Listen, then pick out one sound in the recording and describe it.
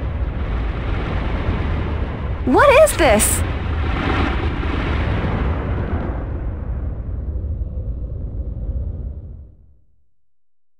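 Thunder rumbles low and heavy, then fades away.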